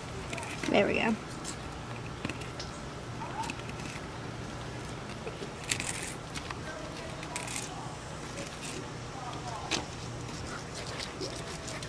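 A knife cuts through raw fish with soft wet scraping sounds.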